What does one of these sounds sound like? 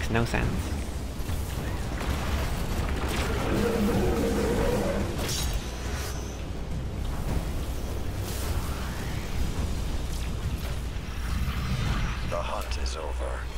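Gunfire and explosions crack and boom in rapid bursts.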